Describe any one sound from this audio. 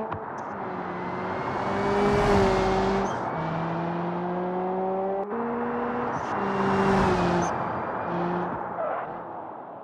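A rally car engine roars at high revs and shifts gears as it speeds past.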